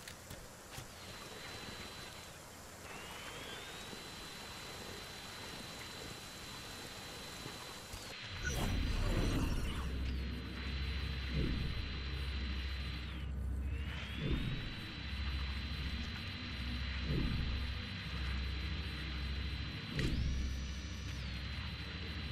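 A small remote-controlled vehicle's electric motor whines steadily, rising in pitch as it speeds up.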